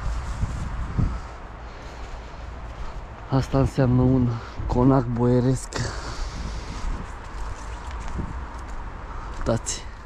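Footsteps crunch and rustle through dry fallen leaves.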